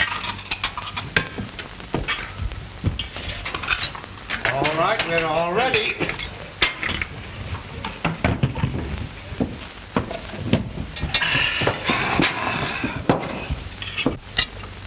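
Dishes and cutlery clatter on a table.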